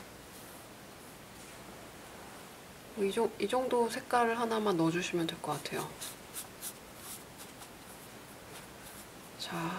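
A paintbrush swishes softly across paper.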